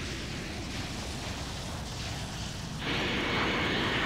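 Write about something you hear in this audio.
Lightning crackles and booms.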